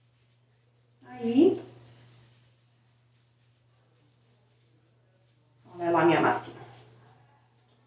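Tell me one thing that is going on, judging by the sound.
A woman speaks calmly close by, in short bursts.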